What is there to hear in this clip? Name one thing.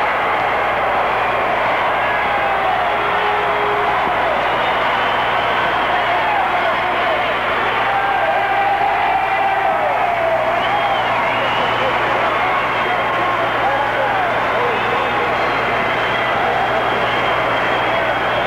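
A large crowd cheers and chatters in an echoing arena.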